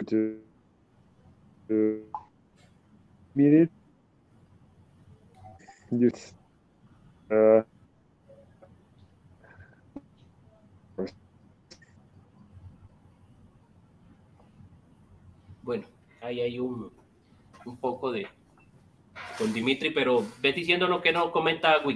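A man speaks with animation over an online call, in short bursts.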